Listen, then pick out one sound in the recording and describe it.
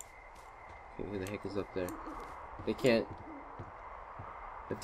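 Footsteps clank on metal stairs.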